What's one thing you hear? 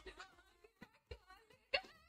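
A young woman cries out in distress nearby.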